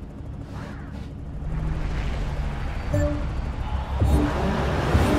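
Racing car engines idle with a low rumble.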